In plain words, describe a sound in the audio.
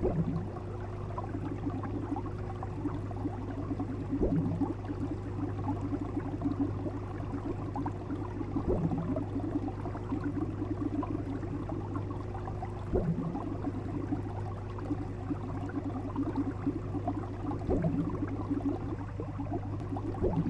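Aquarium water gurgles and bubbles steadily.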